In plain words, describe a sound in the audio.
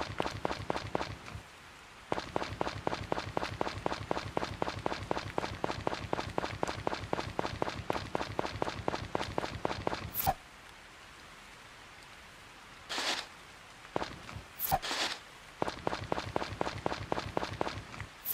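Quick footsteps patter steadily on grass and dirt.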